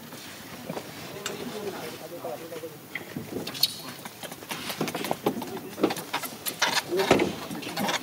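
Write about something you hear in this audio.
A monkey rattles the bars of a metal cage.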